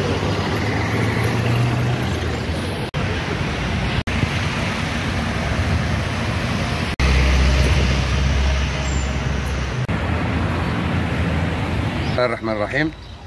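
Cars drive by on a street outdoors.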